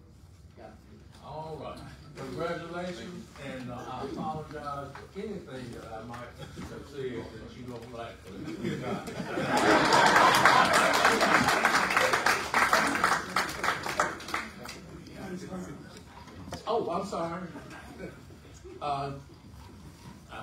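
An older man speaks in a large room.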